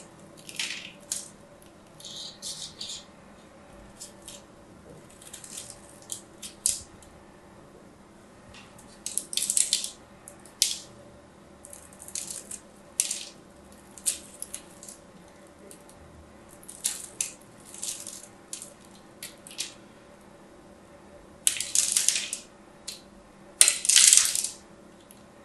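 A blade scrapes and slices crisply into soft soap, close up.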